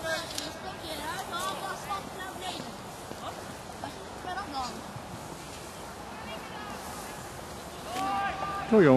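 Young players shout to each other far off across an open field.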